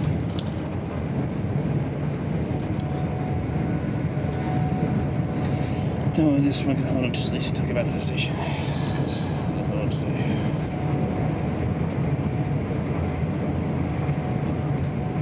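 Train wheels click and clatter over the rail joints.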